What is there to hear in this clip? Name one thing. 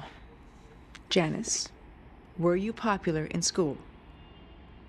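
A middle-aged woman speaks calmly and close by.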